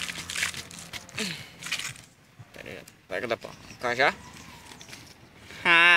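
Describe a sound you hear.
A hand scrapes and digs in dry soil.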